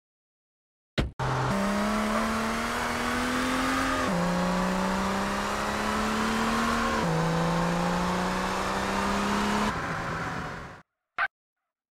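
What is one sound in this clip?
A car engine revs and shifts gears as a car speeds along a road.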